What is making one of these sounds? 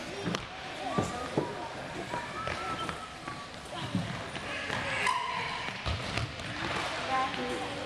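Young girls call out to each other across the court.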